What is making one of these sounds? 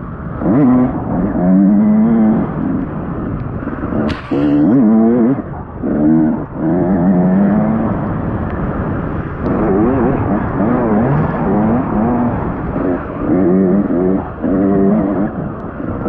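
An off-road motorcycle engine revs up and down as it rides along a dirt trail.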